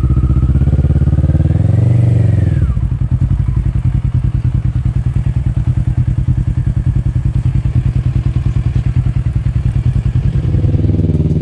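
A motorcycle engine revs up and then drops back.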